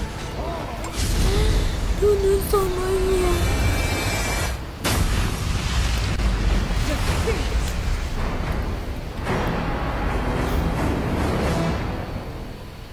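Game battle effects clash and boom loudly.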